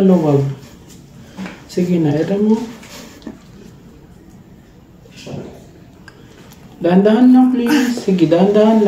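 A young woman speaks firmly and encouragingly, close by.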